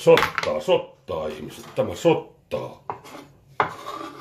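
A knife taps and scrapes on a wooden board.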